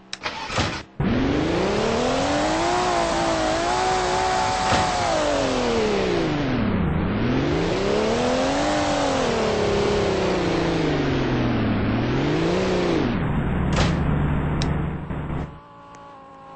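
A car engine revs up and down as the car drives.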